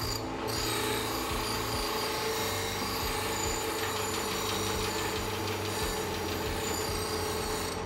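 A bench grinder hums steadily as it spins.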